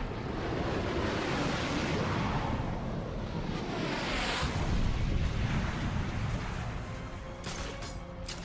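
Wind rushes loudly past, as if in a fast fall through the air.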